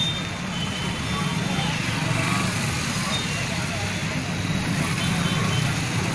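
Motorbike engines hum as they pass close by.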